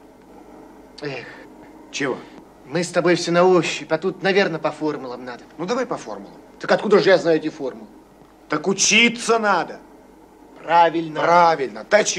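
Two young men talk with animation nearby.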